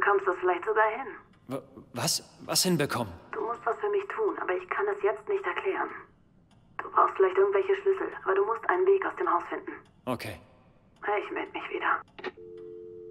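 A woman speaks urgently through a telephone receiver.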